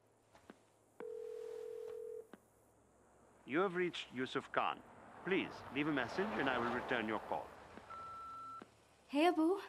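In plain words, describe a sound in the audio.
A telephone line tone sounds steadily, then cuts off.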